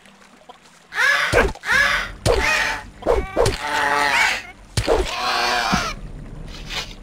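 A creature shrieks in pain while being struck.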